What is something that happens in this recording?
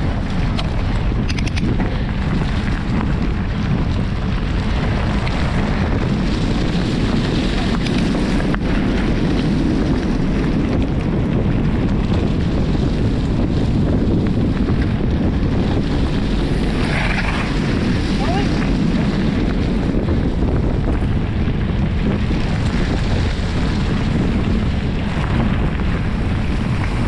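Bicycle tyres roll and crunch over a gravel track.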